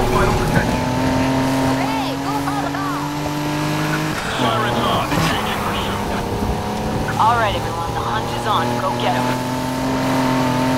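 Police sirens wail nearby.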